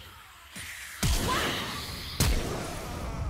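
Sharp impact blasts from game abilities hit with a booming crack.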